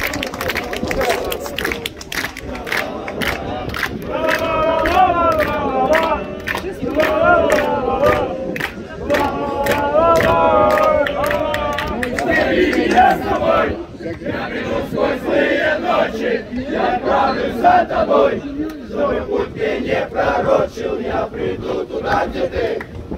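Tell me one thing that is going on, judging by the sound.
Men in a crowd nearby shout and chant loudly outdoors.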